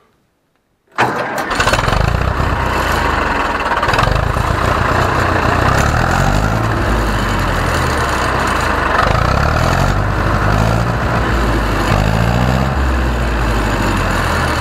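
A tractor engine starts up and runs with a loud diesel rumble.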